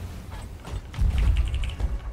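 A cannon fires with a loud, deep boom.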